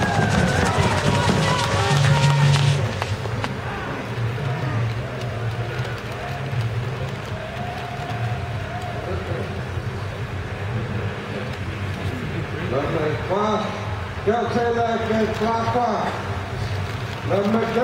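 A crowd of men and women chatters and cheers outdoors.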